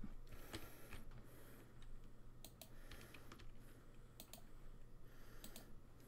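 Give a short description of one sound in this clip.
Short, bright game chimes and clicks sound now and then.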